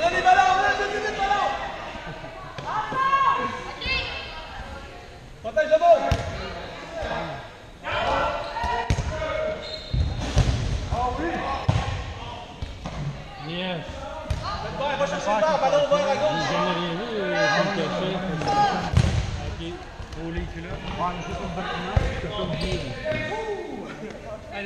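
Balls thump on a wooden floor and bounce off bodies.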